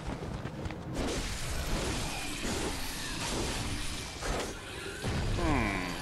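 A blade slashes and thuds into a creature.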